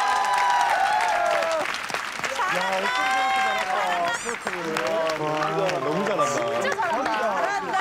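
A group of people clap their hands.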